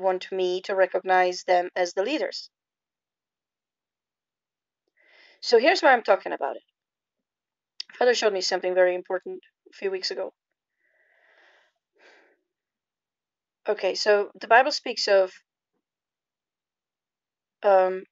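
A young woman speaks calmly and close up, with pauses.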